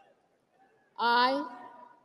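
A woman speaks clearly and firmly through a microphone.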